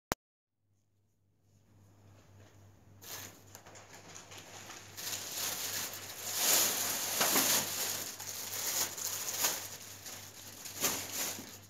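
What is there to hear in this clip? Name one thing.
A wire shopping cart rattles.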